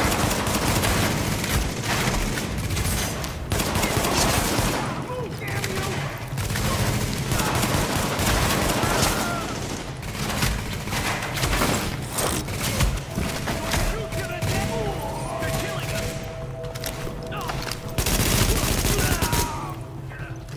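Rapid gunfire rattles loudly in a large echoing space.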